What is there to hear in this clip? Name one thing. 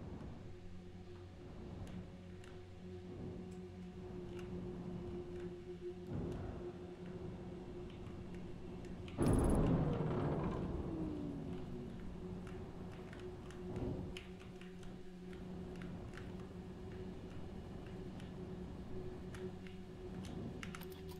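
A spaceship's engine hums steadily.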